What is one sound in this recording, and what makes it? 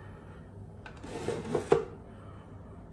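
A hair dryer and its cord rustle as they are moved inside a drawer.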